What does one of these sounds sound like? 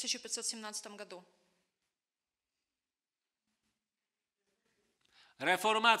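A woman speaks clearly into a microphone.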